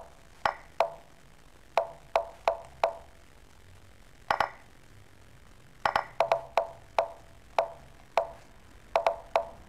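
Short sharp clicks sound in quick, uneven bursts as chess pieces are moved.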